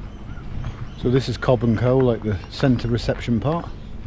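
A man talks close to the microphone, casually.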